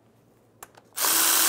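A cordless ratchet whirs.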